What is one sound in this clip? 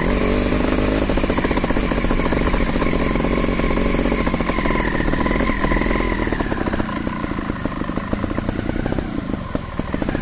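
A bicycle's chain and frame rattle over bumps.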